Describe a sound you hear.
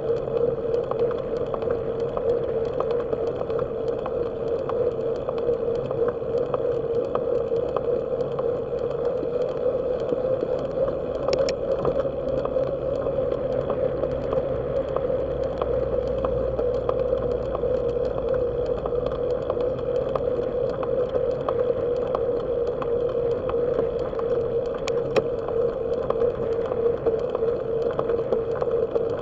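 A vehicle's engine drones steadily.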